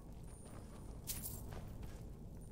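Coins jingle as a purse is picked up.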